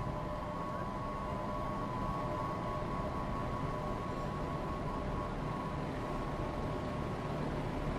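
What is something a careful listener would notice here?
An idling electric locomotive hums steadily nearby.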